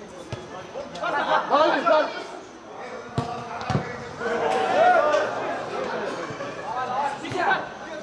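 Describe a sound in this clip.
Young men shout and call out to each other across an open outdoor pitch.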